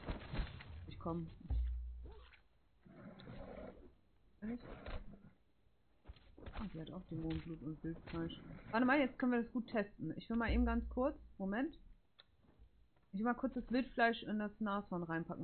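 A young woman talks casually and with animation into a close microphone.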